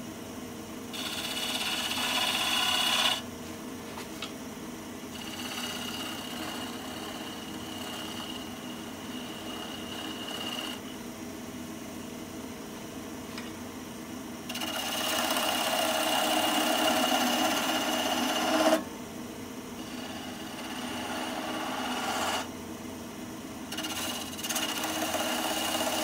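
A chisel scrapes and hisses against spinning wood in bursts.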